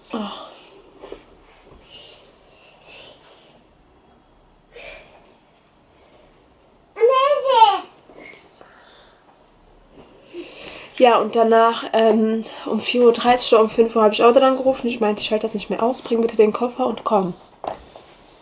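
A young woman speaks close by, in a tired, emotional voice.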